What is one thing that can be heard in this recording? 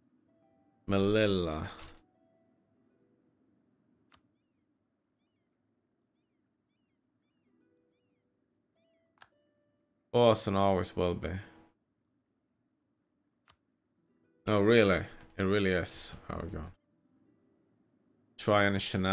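A young man talks calmly into a close microphone, in short bursts.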